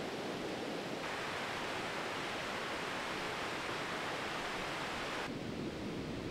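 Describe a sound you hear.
A mountain stream rushes over rocks nearby.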